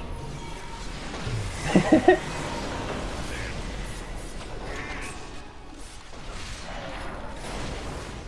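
Magical spells crackle and burst during a fantasy battle.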